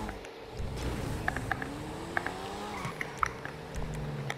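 Exhaust pops and crackles from a car.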